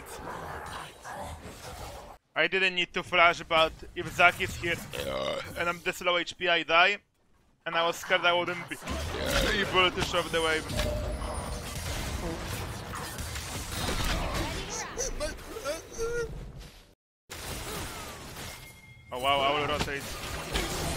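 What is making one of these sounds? Game sound effects zap and clash.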